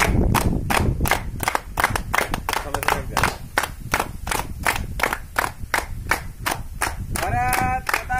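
A group of young men clap their hands in unison.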